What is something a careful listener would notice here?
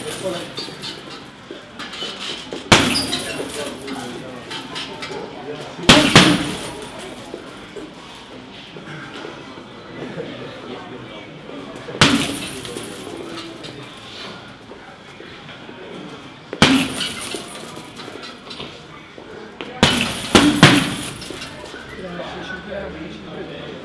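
Sneakers squeak and shuffle on a gym floor.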